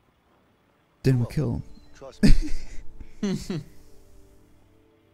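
A man answers calmly, close by.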